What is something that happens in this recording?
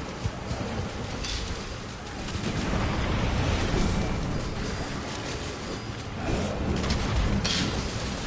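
A huge beast thuds heavily on the ground.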